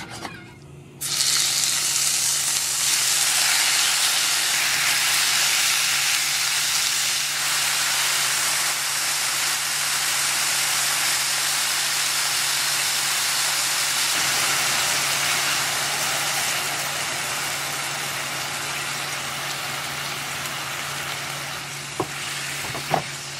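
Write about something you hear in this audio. Meat sizzles loudly in a hot pan.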